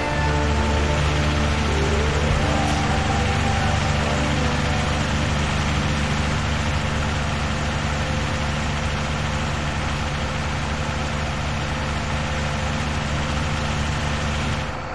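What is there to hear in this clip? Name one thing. Tyres roll along a road with a steady rush.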